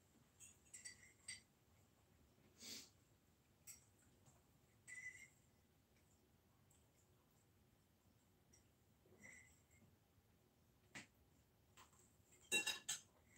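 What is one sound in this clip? Cutlery clinks and scrapes against plates.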